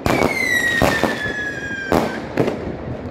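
A firework rocket whistles shrilly as it rises.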